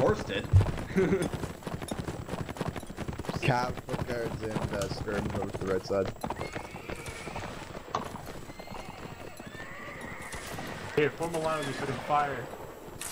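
Horse hooves thud steadily on snow.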